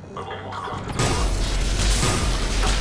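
Guns fire in rapid bursts, close by.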